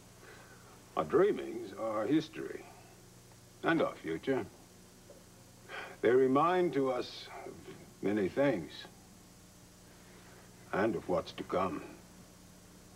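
An elderly man speaks quietly in short, halting phrases.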